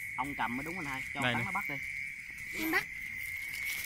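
A man talks nearby with animation.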